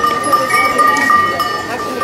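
Cart wheels rattle over cobblestones.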